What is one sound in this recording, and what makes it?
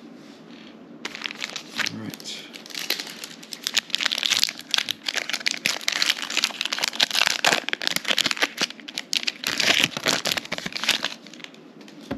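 Hands crinkle and tear open a foil trading card pack.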